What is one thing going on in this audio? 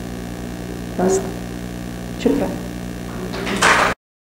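A young woman speaks into a microphone over loudspeakers in a reverberant hall.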